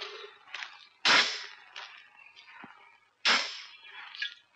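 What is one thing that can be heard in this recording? A man strikes a pole with loud thuds.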